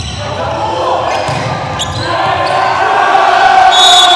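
A volleyball is struck hard with a sharp smack.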